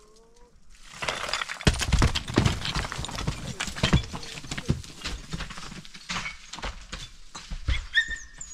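Footsteps crunch and scrape on rocky ground close by.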